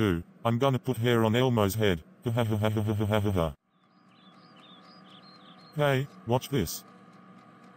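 A man speaks in a flat, computer-like voice.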